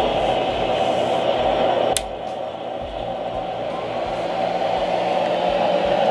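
A small electric fan whirs steadily.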